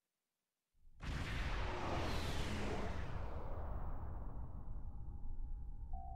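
A spaceship engine roars and whooshes past.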